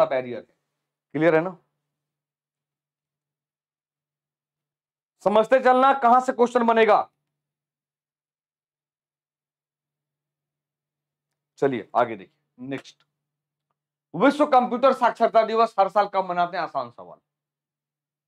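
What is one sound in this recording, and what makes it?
A man lectures with animation into a close microphone, in bursts with pauses.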